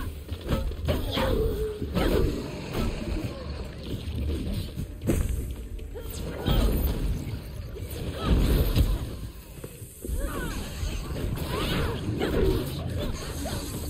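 A sword clashes and slashes in a fight.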